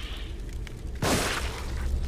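A pistol fires a single loud shot close by.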